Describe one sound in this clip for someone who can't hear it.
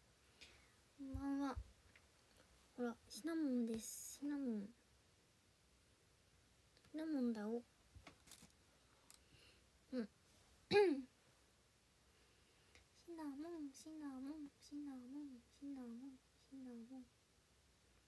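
A young woman speaks softly and playfully close to the microphone.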